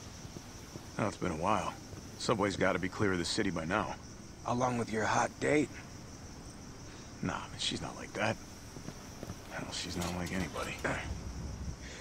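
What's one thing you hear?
A deep-voiced man speaks calmly and close.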